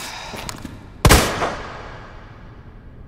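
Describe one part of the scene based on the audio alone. A heavy metal lid slams shut with a loud bang.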